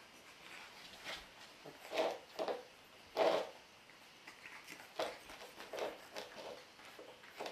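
Puppies yip and whimper softly while playing.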